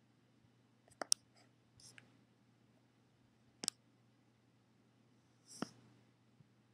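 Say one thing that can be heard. A phone's buttons click sharply a few times.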